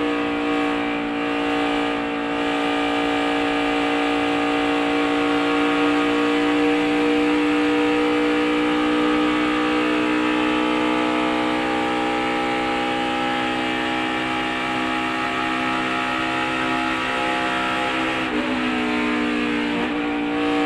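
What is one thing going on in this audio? Wind rushes past the car.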